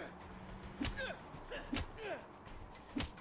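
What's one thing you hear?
A man grunts in pain close by.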